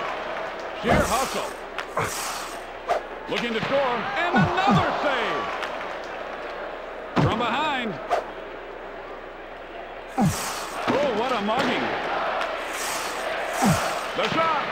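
A puck clacks sharply off a stick in a hockey game.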